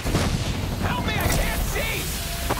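A smoke grenade bursts with a loud hiss.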